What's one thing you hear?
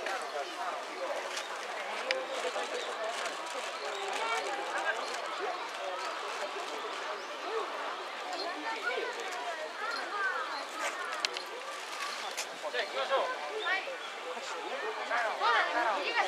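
A crowd of adults chatters outdoors nearby.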